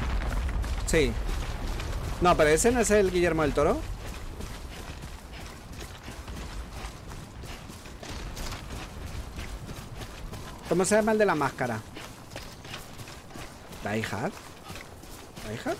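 Footsteps crunch over grass and stones.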